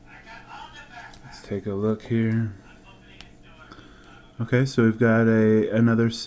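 A plastic card sleeve rustles softly as it is handled.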